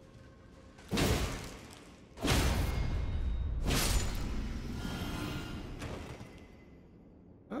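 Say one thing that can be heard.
Game swords swing and strike with loud crashing blows.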